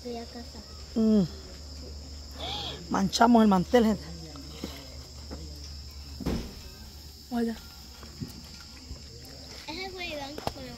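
A young child talks and squeals excitedly close by.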